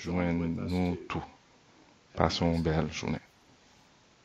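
An elderly man speaks calmly into a microphone, close by, as over an online call.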